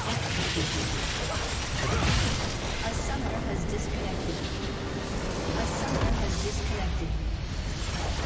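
Game spell effects crash and whoosh in a busy fight.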